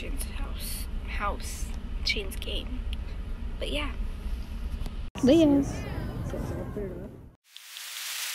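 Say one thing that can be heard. A teenage girl sings close by.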